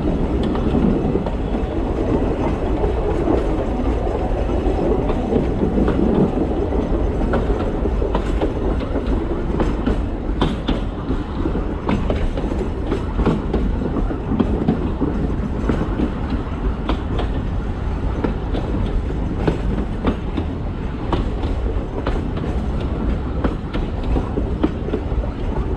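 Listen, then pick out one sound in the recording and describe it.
A train rumbles steadily along the track.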